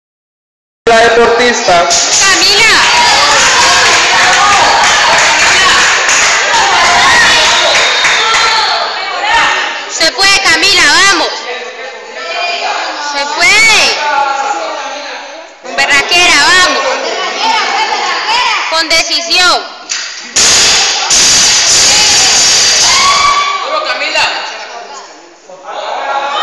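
Children talk and call out loudly in an echoing hall.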